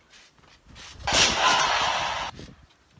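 A loud crash sounds on a trampoline mat.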